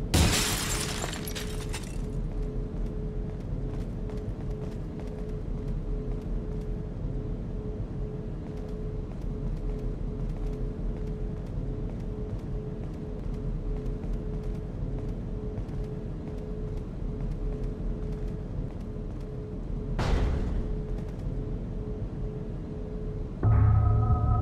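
Machines hum steadily.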